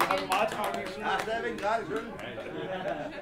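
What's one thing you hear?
An audience claps nearby.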